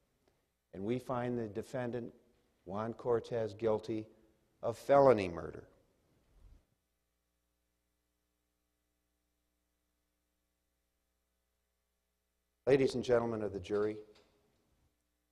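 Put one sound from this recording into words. A man speaks calmly through a microphone, pausing now and then.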